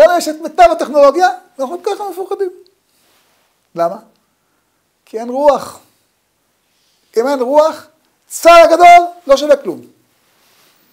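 An elderly man speaks with animation into a microphone, in short bursts with pauses.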